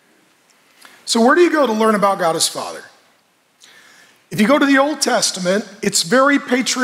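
A middle-aged man speaks with animation through a headset microphone.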